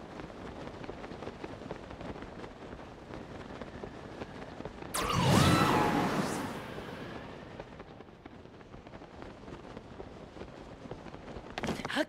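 Wind rushes past steadily during a glide.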